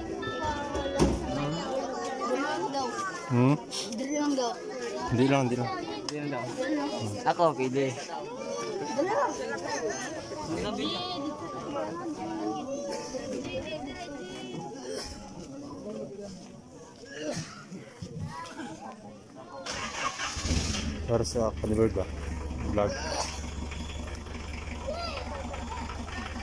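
Several men and women chat in the background outdoors.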